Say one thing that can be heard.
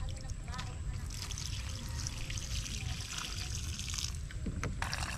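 Water pours out of a pot and splashes onto the ground.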